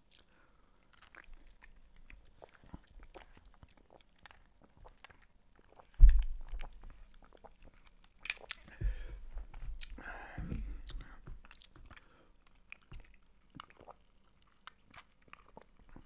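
A man sips a drink through a straw close to a microphone.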